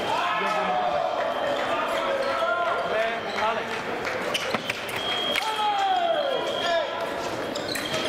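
Fencing shoes squeak and stamp on the floor as fencers advance and lunge.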